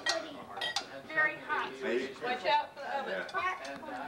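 Serving spoons clink against dishes.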